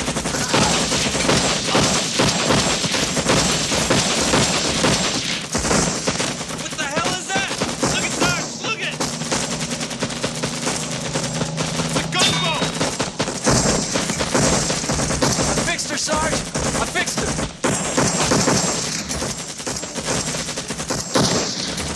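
A man shouts over the gunfire.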